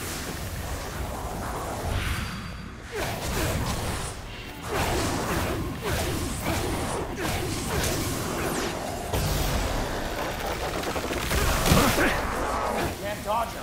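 Magical blasts whoosh and crackle in bursts.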